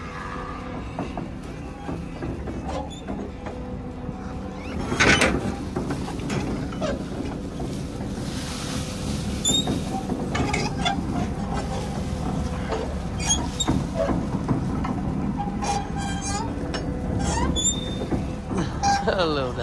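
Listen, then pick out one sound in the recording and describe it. A tractor-pulled feed wagon rumbles steadily across a field.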